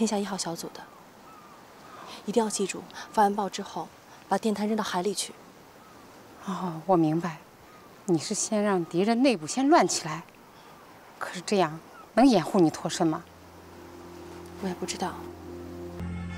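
A middle-aged woman speaks earnestly and close by.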